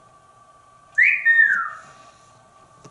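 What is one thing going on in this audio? A parrot gives a sharp whistle that swoops down.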